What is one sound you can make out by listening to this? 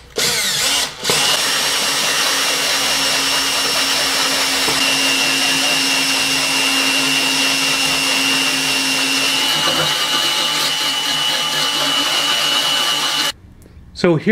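A cordless drill whines as it spins a wooden tube.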